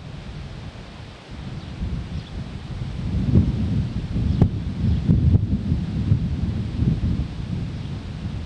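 River water laps gently against rocks.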